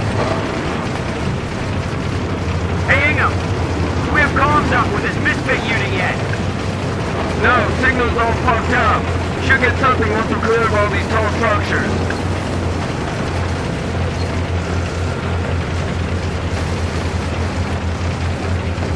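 A tank engine rumbles steadily and low.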